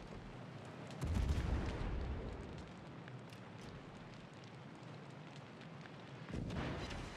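Heavy guns fire with deep, rumbling booms.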